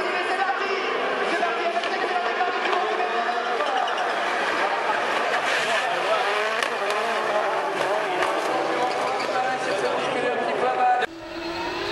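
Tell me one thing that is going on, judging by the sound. Rally cars roar past at speed, engines rising and falling in pitch.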